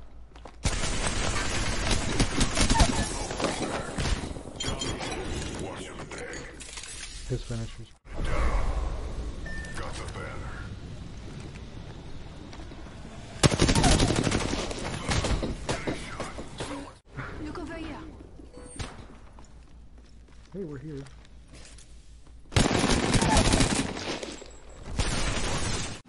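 Rapid gunfire bursts loudly in quick volleys.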